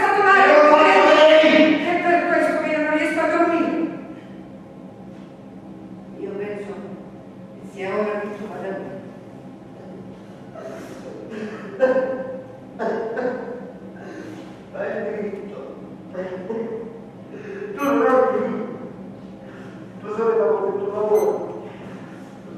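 A man speaks with feeling in an echoing hall.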